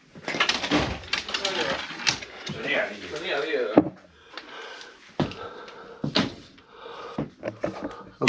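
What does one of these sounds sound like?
Clothes hangers rattle and clothes rustle.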